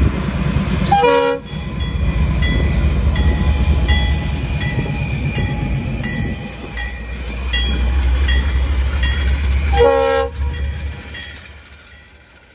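A diesel locomotive engine rumbles loudly close by.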